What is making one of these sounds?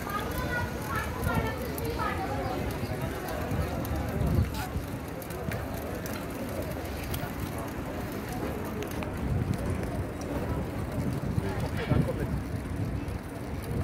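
A crowd of people chatter in the distance.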